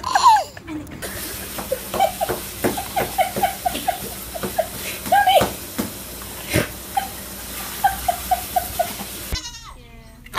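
A hen clucks softly in short bursts.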